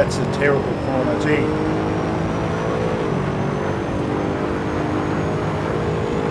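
A race car engine roars at high revs.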